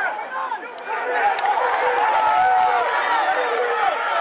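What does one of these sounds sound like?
A crowd of spectators cheers loudly nearby.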